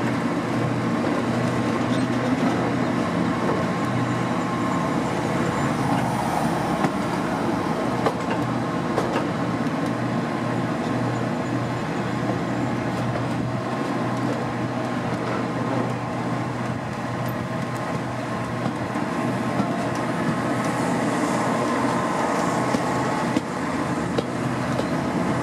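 Wind rushes past an open window.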